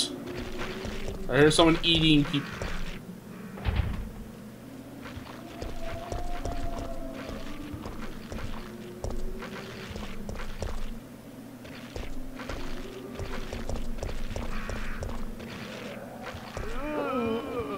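Footsteps tap on hard ground.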